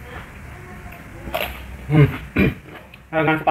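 A young man crunches on a raw vegetable.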